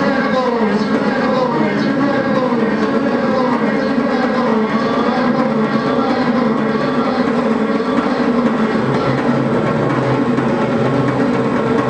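A man sings and murmurs into a microphone.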